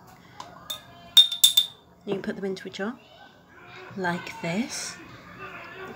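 Pieces of pepper drop softly into a glass jar.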